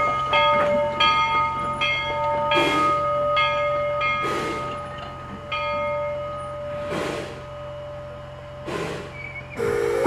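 Railway wagon wheels clack rhythmically over rail joints as the wagons roll slowly past.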